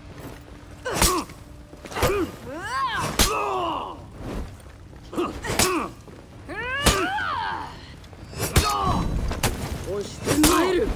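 Metal blades clash and ring sharply.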